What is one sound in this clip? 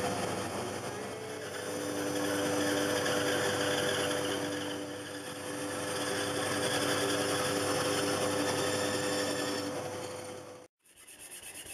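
A band saw hums and whines as it cuts through wood.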